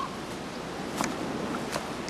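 Pine branches rustle and snap close by.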